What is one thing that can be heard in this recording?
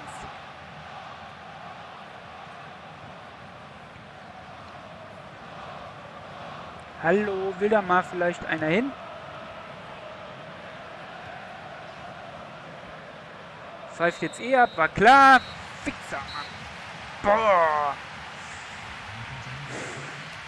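A stadium crowd murmurs and roars steadily in the distance.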